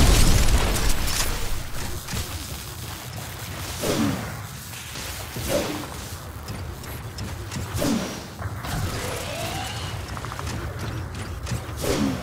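Heavy metal footsteps clank and thud on the ground.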